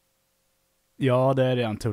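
A person speaks into a close microphone.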